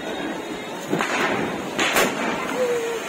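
A firework shoots up with a whoosh.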